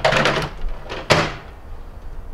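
A microwave door shuts with a thud.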